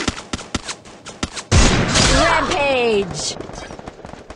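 Gunshots crack loudly in quick succession.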